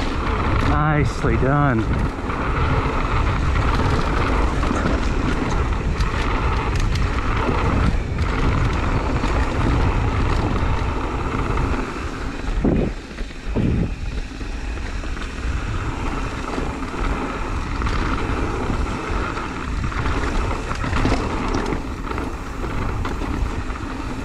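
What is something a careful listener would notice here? Bike tyres rumble and crunch over a dirt trail.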